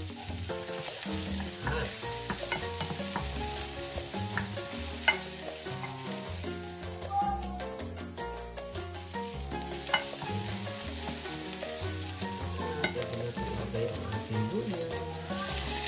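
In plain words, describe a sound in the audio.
A wooden spoon scrapes and stirs in a metal pan.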